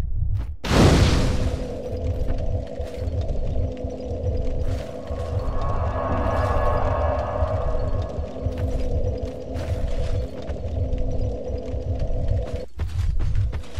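A small fire crackles and hums steadily.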